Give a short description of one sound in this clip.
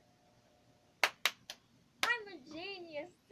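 A young girl claps her hands.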